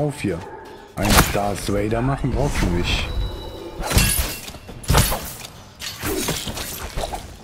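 Sword blades clash and slash sharply.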